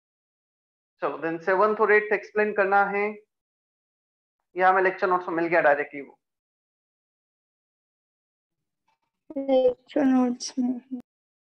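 A man speaks calmly into a nearby microphone, in short phrases with pauses.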